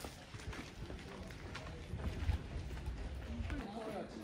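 Footsteps tap on a stone path.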